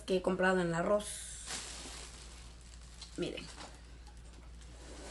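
Plastic packaging rustles.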